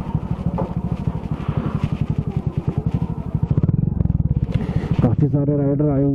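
A motorcycle engine thumps close by at a low idle.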